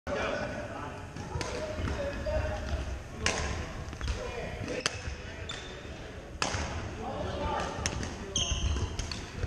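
Many people talk and call out across a large echoing hall.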